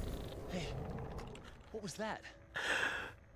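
A man says something short and calm, close by.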